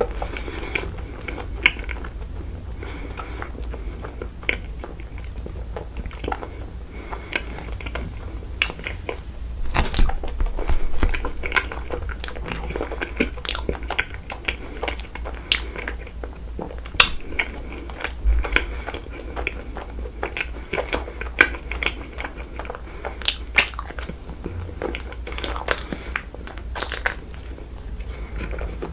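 A young man chews and smacks his lips close to a microphone.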